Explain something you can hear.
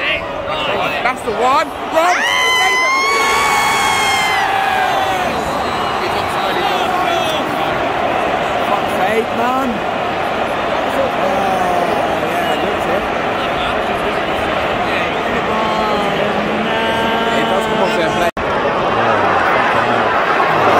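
A large crowd of fans cheers and chants loudly in an open stadium.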